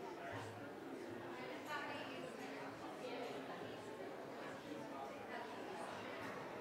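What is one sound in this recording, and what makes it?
Many men and women chat at once in a large echoing hall.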